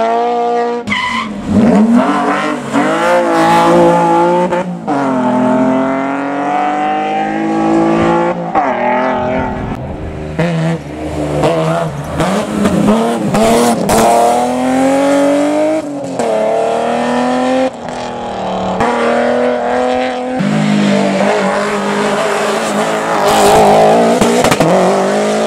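Rally car engines roar loudly at high revs, rising and falling as they accelerate through gear changes.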